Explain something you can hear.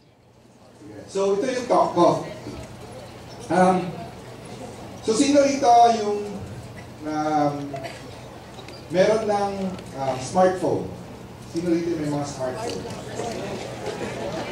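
A man speaks with animation through a microphone and loudspeakers in a large hall.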